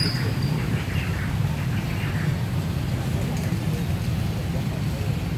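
Young men chat quietly nearby outdoors.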